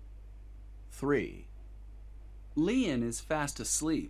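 A woman speaks clearly and slowly into a microphone, close by.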